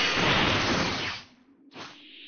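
A loud crashing blast of a punch landing.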